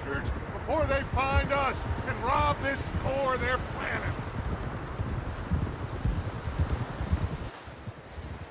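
Horses' hooves thud through deep snow.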